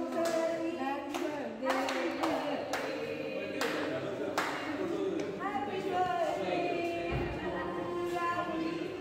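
A group of men and women sing together nearby.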